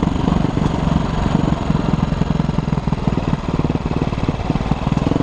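A dirt bike engine buzzes loudly up close, its pitch rising and falling.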